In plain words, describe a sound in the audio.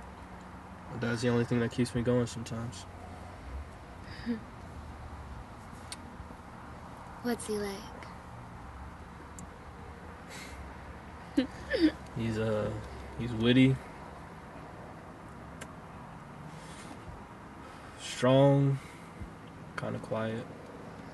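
A young man speaks quietly up close.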